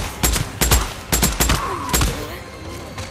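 A submachine gun fires in loud rapid bursts.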